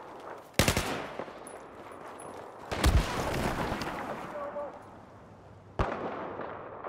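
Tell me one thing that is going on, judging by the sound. Gunshots bang loudly and echo away.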